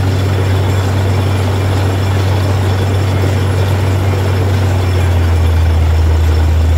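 A drill bit grinds into the ground.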